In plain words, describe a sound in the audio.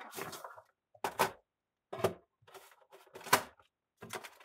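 Plastic packaging crinkles and rustles up close.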